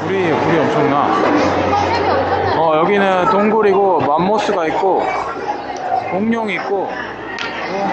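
A crowd of diners chatters loudly in a busy, echoing room.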